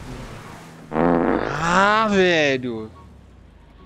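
A young man cries out loudly in a long, wavering shout.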